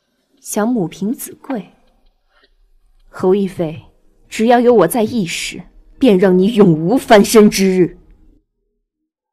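A young woman speaks coldly and calmly, close by.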